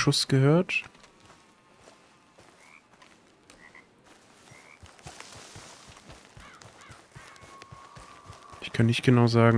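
Footsteps crunch quickly over rough ground.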